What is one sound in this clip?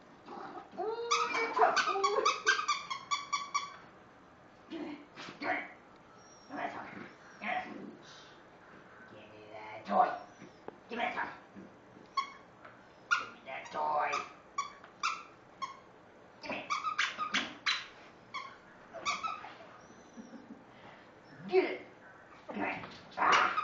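A rubber toy squeaks repeatedly in short bursts.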